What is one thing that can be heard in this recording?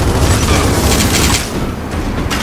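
A vehicle explodes with a loud blast.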